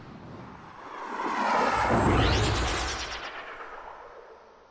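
A spacecraft roars past with a rising and falling whoosh.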